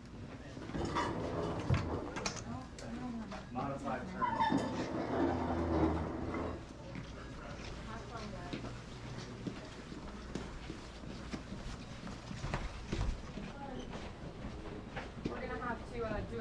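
Several men and women talk nearby.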